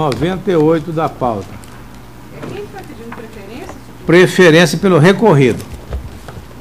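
A man speaks into a microphone, his voice echoing in a large hall.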